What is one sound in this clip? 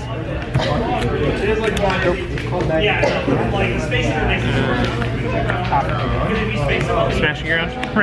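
Playing cards are laid down softly on a mat.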